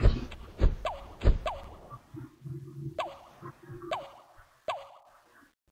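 Cartoon plants pop as they shoot peas.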